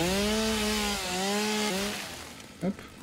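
A chainsaw engine whines and revs.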